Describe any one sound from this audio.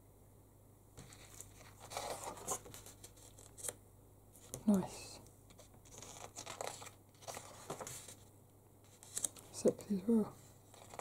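Glossy book pages rustle and slap as they are turned by hand.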